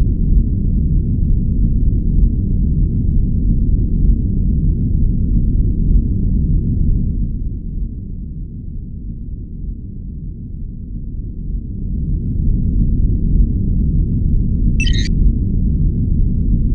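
A deep spaceship engine rumble drones steadily, quieter for a few seconds in the middle.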